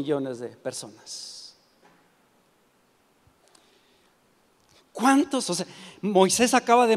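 An elderly man speaks with animation through a microphone in a large echoing hall.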